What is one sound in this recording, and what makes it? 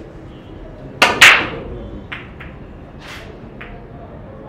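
Pool balls clack sharply against each other.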